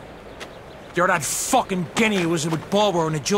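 A man speaks forcefully in a group outdoors.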